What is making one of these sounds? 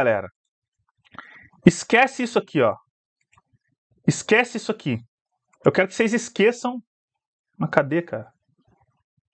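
A man speaks calmly and close to a microphone, in short phrases with pauses.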